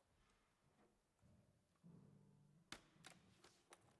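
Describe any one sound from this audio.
An accordion plays a few quiet held notes.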